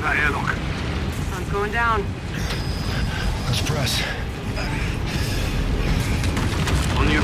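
A deep engine rumble drones steadily.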